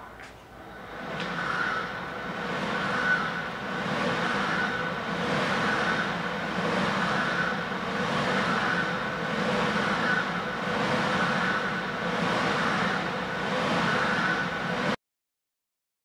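A paddling machine's flywheel whirs in rhythmic surges with each stroke.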